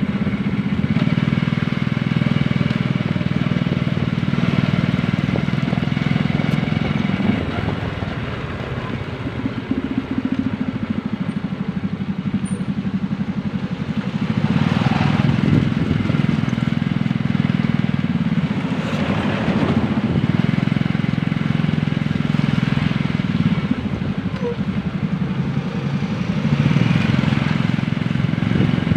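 A motorbike engine hums steadily as it rides along.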